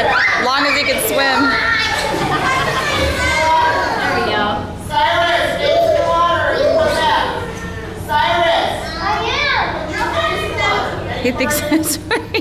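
Water splashes as a young child swims.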